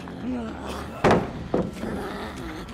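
A wooden pallet clatters loudly.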